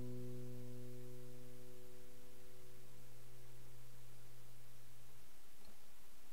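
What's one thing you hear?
An acoustic guitar chord rings out close by and slowly fades away.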